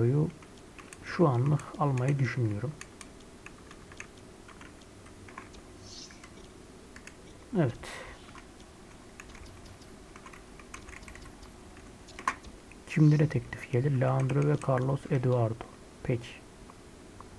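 A man talks with animation into a headset microphone, close by.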